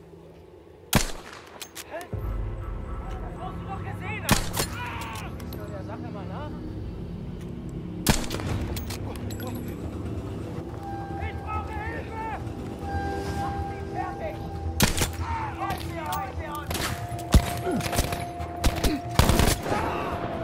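Gunshots crack loudly, one at a time.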